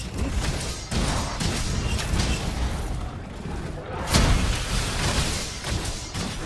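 A large monster stomps heavily on the ground.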